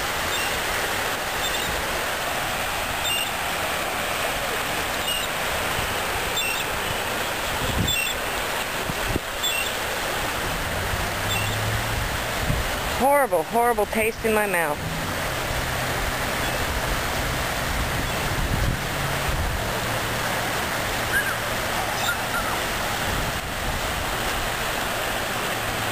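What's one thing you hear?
Small waves lap and wash gently against a shore.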